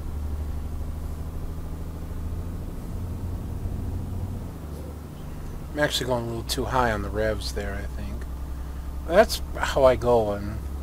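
A truck engine hums in a low, steady drone.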